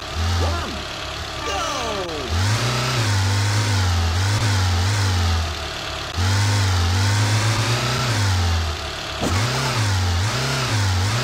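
A small car engine revs and drones, rising and falling in pitch.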